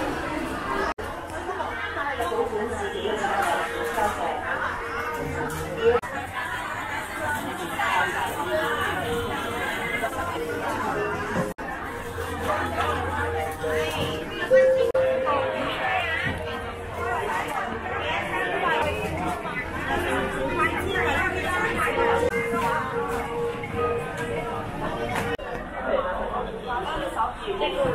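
A dense crowd of men and women chatters all around in a large busy indoor space.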